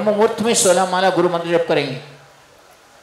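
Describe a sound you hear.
A middle-aged man speaks loudly into a microphone, heard through a loudspeaker.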